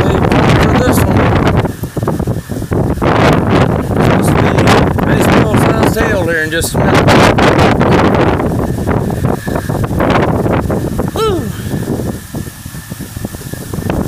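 Strong wind gusts roar loudly outdoors.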